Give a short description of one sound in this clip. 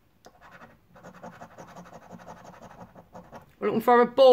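A coin scratches briskly across a scratch card.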